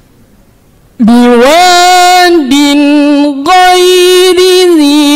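A young man chants in a long, melodic, sustained voice through a microphone.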